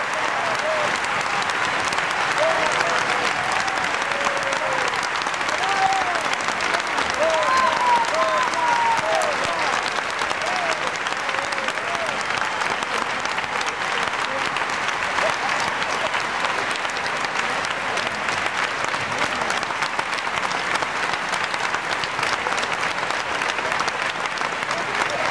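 A large audience applauds loudly throughout.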